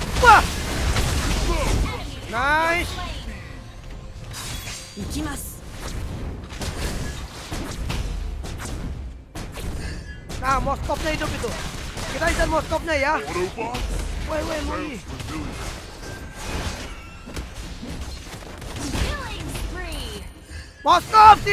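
Game effects clash and zap in a fast battle.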